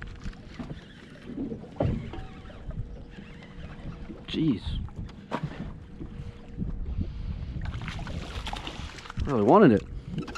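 A fishing reel clicks and whirs as its line is wound in.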